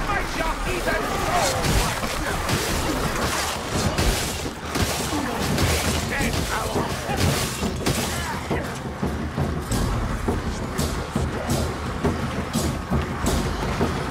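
Blades slash and thud into bodies in quick succession.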